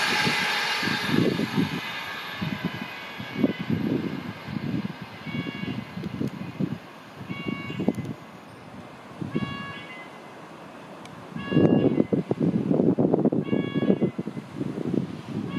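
A locomotive engine rumbles and throbs as a train approaches from a distance.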